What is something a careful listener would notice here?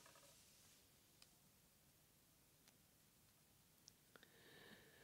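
An elderly woman reads aloud quietly into a microphone.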